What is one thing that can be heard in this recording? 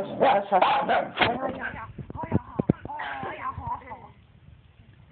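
A small dog growls and yaps playfully up close.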